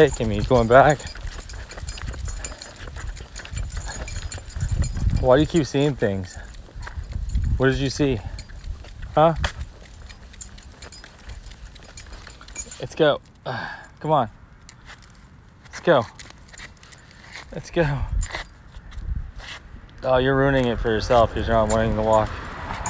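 A dog whines and yelps in short high bursts.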